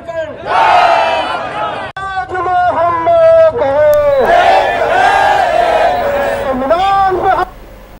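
A man shouts slogans through a loudspeaker, sounding distorted and loud.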